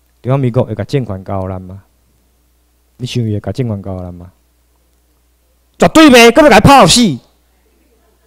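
A man speaks with animation into a microphone over loudspeakers, in bursts with pauses.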